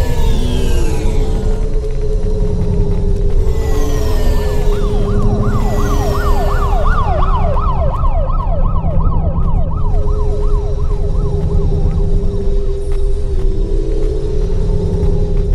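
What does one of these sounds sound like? A futuristic hovercar engine hums steadily.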